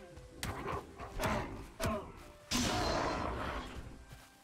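A weapon strikes a creature with sharp thuds.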